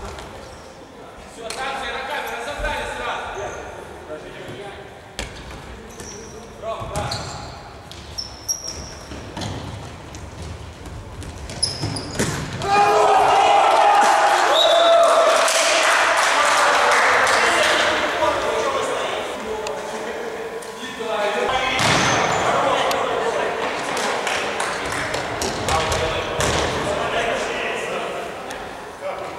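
A futsal ball is kicked with sharp thuds in an echoing hall.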